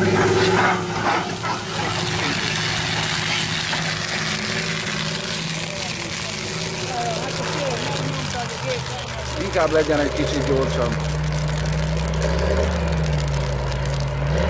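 Burning stubble crackles and pops.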